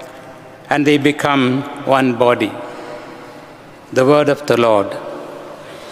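A man speaks calmly into a microphone, heard through loudspeakers in a large echoing hall.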